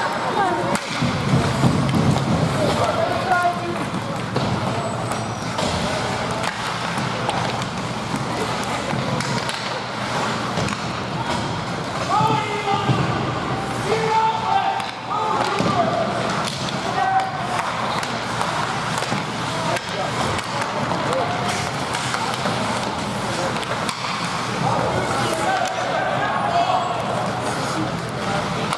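Spectators chatter and shout in a large echoing rink.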